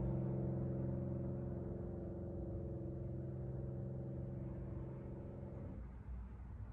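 A piano plays a soft, sustained chord that slowly fades away.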